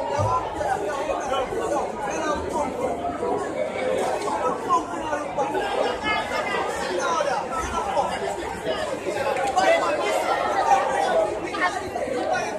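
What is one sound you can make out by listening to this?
A crowd of spectators chatters loudly nearby, outdoors.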